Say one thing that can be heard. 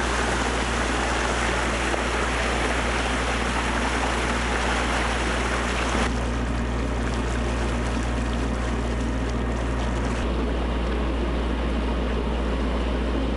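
A boat engine hums steadily and low.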